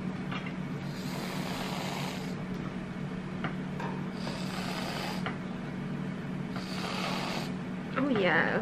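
Whipped cream hisses out of a spray can in short bursts.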